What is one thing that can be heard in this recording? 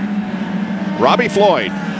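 A man speaks into a headset microphone over a radio.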